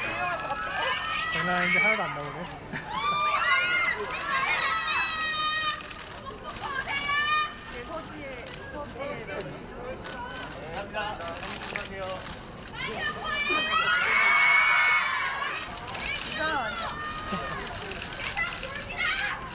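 A crowd of young women scream and cheer excitedly nearby.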